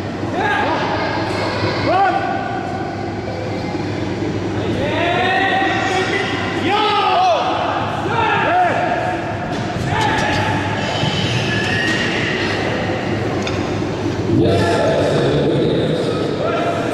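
A crowd of men shouts loud encouragement in a large echoing hall.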